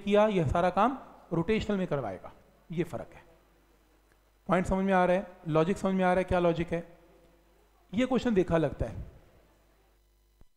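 A man lectures calmly and clearly into a close microphone.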